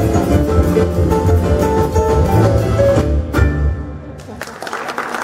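A jazz trio plays piano, double bass and drums.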